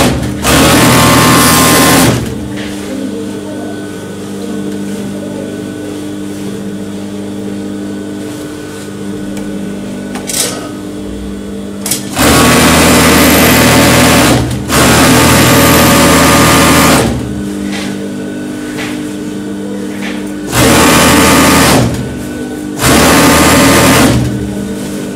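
A sewing machine runs fast in loud, whirring bursts.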